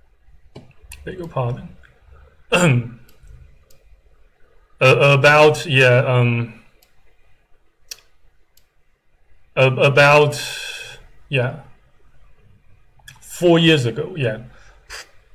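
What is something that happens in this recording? A man speaks calmly and close to the microphone, in short bursts with pauses.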